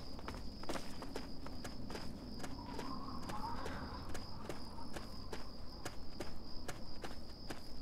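Footsteps crunch quickly over loose gravel and rubble.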